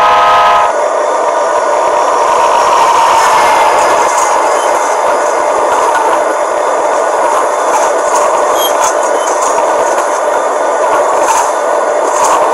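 A passing train rumbles and clatters along the tracks.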